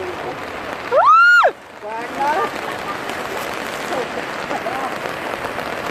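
Floodwater splashes and rushes below.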